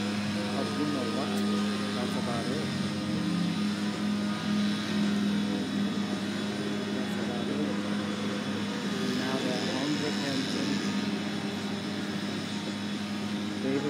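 A middle-aged woman talks calmly, close by.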